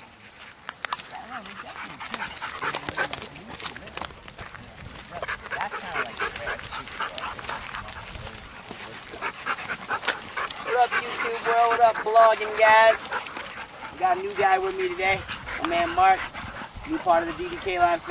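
Dogs pant and scuffle on gravel and grass.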